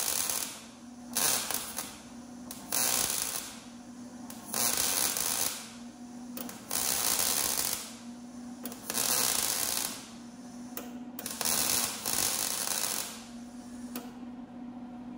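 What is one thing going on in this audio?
A welder crackles and hisses in short bursts.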